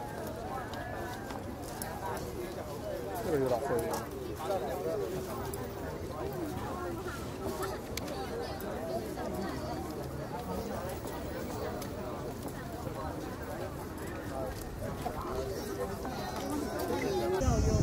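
Men talk and chatter nearby, outdoors.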